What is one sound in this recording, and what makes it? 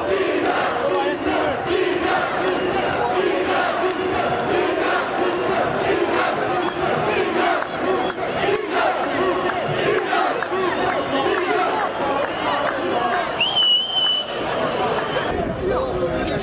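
A large crowd of men and women chants and shouts outdoors.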